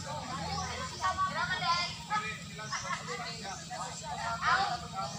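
Several people talk and call out with animation outdoors, some way off.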